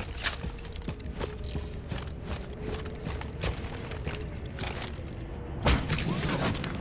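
Heavy armoured footsteps thud quickly on a hard floor.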